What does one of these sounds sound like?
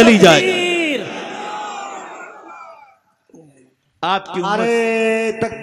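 An elderly man preaches forcefully into a microphone, heard through loudspeakers with echo.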